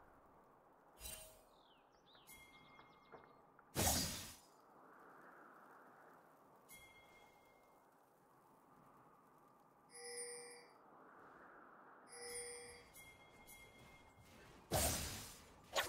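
Game sound effects of blade strikes and spells burst out now and then.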